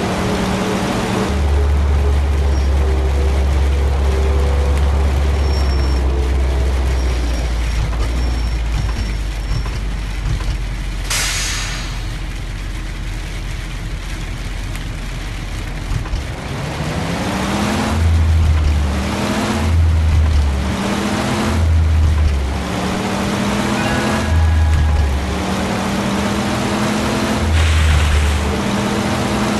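A bus engine rumbles and revs up repeatedly as it shifts through the gears.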